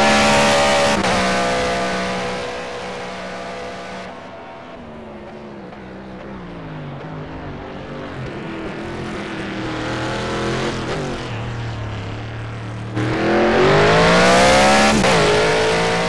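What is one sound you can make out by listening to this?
A racing car engine shifts gears with sharp changes in pitch.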